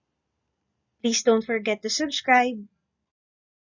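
A woman speaks brightly and clearly into a microphone.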